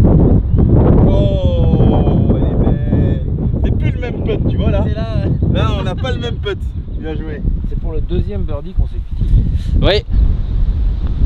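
Adult men talk casually nearby.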